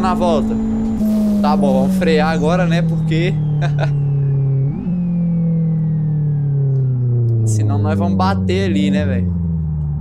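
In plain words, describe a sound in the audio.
A car engine winds down, its pitch sliding lower.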